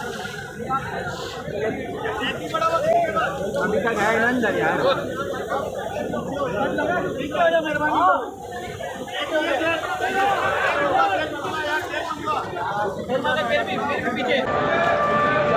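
Several men talk and shout excitedly nearby.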